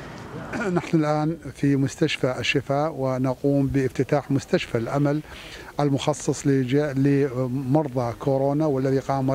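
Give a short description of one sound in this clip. A man speaks calmly and steadily into a microphone close by.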